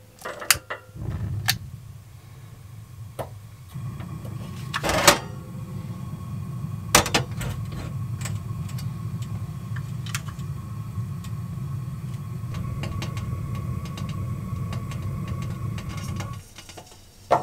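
A gas burner flame roars steadily.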